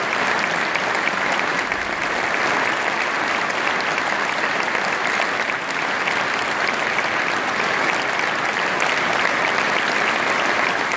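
A choir and orchestra perform in a large echoing hall.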